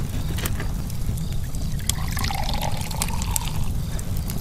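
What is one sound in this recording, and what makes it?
Liquid pours and gurgles from a bottle into a can.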